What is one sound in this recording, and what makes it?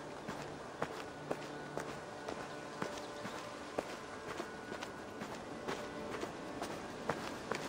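Footsteps crunch steadily on a dirt path.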